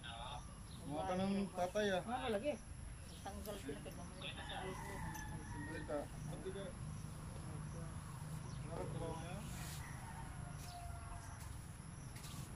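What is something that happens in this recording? Women talk nearby, calmly and with animation.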